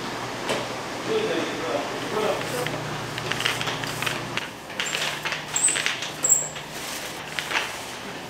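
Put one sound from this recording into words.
A sticky lint roller rolls and crackles over fabric.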